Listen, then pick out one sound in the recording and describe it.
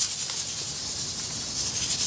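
A spoon stirs liquid in a metal pot.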